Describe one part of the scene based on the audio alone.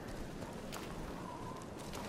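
Waves wash against rocks.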